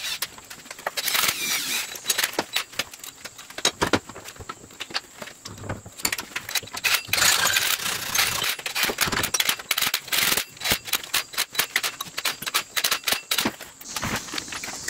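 A screwdriver clicks and scrapes as bolts are turned.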